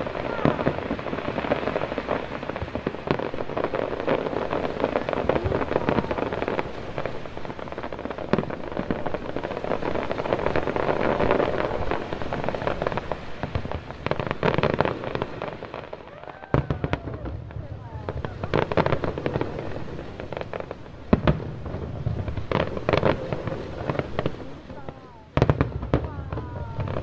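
Sparks fizz and crackle from fireworks near the waterline.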